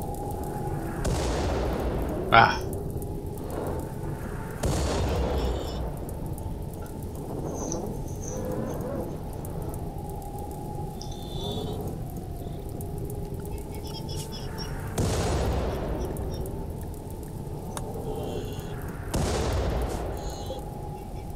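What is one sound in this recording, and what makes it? Shells explode with deep, rumbling booms now and then.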